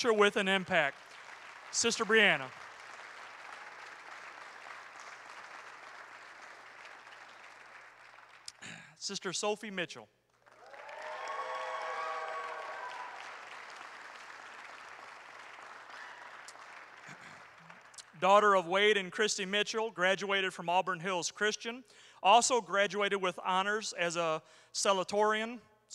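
A man speaks into a microphone, heard through loudspeakers in a large echoing hall.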